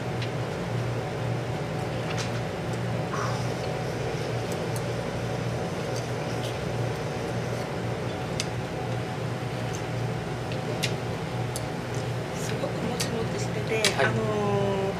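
Cutlery clinks lightly against plates.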